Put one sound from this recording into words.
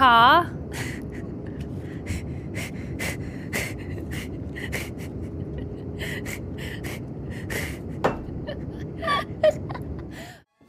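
A young woman laughs softly close to a microphone.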